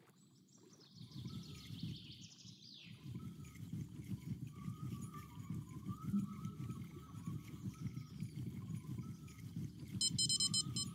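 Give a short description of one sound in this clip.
A fishing reel whirs and rattles as it winds in line.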